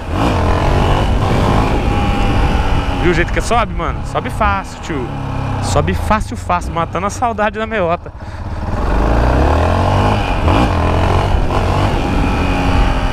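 A motorcycle engine hums and revs as the bike rides along.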